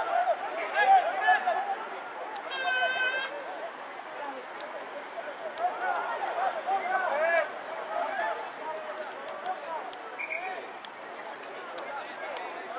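Young men shout and call out on an open field.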